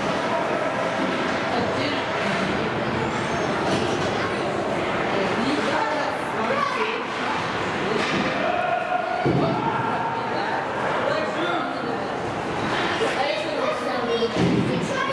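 Young players and spectators shout and call out across an echoing rink.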